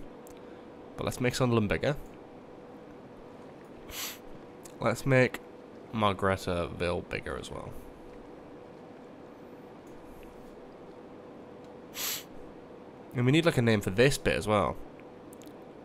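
A young man talks casually and close into a microphone, in short bursts.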